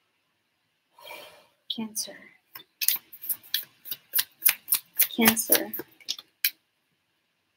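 Playing cards riffle and flick close to a microphone.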